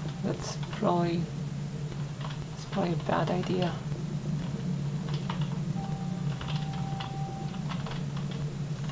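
Video game sounds of shots and effects play through small desktop loudspeakers.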